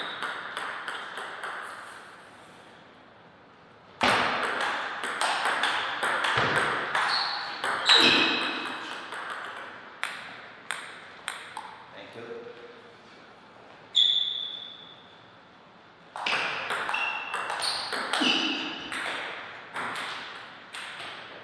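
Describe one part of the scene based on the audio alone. A table tennis ball clicks rapidly back and forth off paddles and the table.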